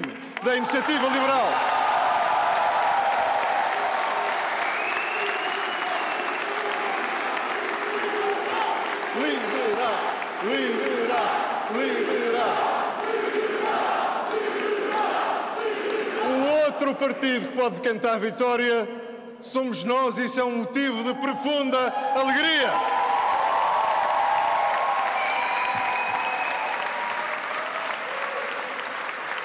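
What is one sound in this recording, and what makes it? A large crowd cheers and chants loudly.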